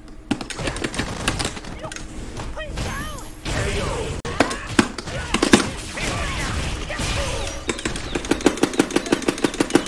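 Punches and kicks land with loud, sharp smacks in quick bursts.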